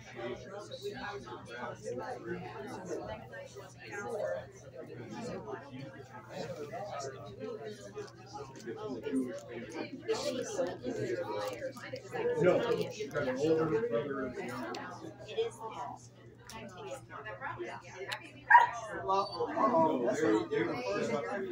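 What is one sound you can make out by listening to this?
Men and women talk nearby in a murmuring indoor crowd.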